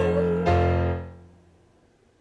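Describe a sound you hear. Young girls sing together over an online call, and the singing fades out.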